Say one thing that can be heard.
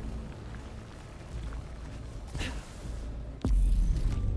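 Footsteps run across rocky ground.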